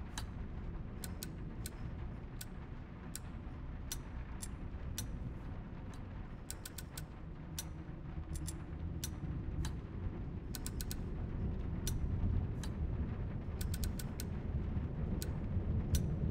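A metal mechanism clicks and ticks as its gears turn.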